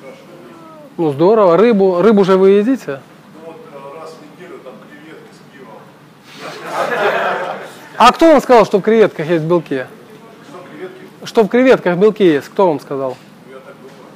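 A young man speaks nearby, calmly and with pauses.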